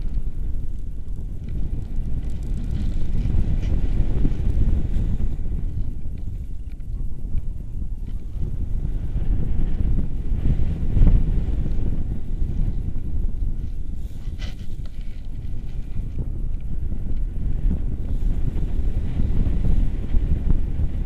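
Wind rushes and buffets loudly against the microphone.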